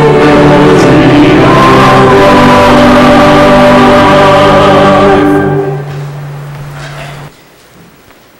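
A choir sings loudly and the final chord fades out.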